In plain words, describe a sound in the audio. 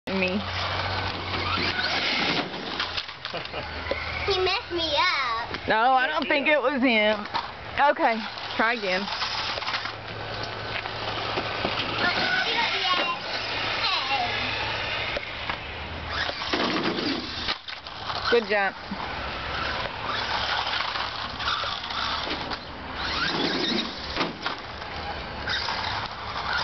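A toy electric car whirs as it drives across pavement.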